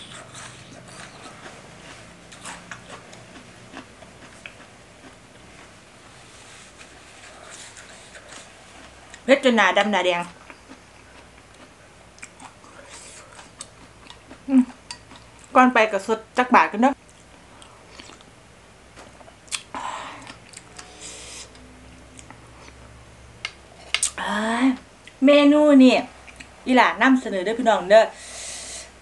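A young woman chews food with soft wet sounds close to a microphone.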